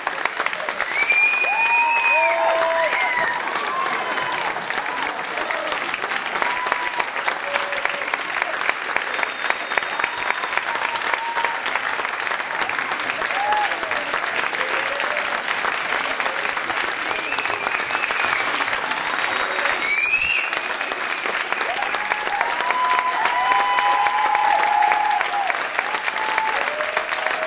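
Audience members whistle loudly now and then.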